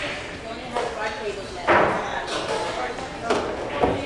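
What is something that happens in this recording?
Billiard balls clack together and roll across the table.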